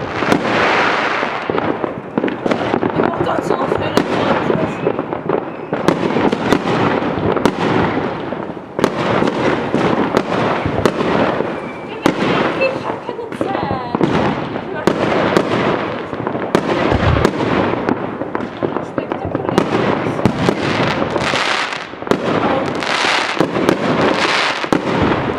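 Fireworks crackle and fizzle as they burst.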